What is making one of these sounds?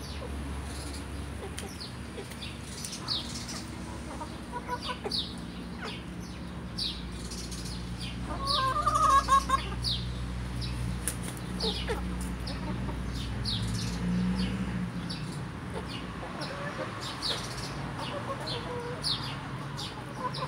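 Hens cluck softly nearby.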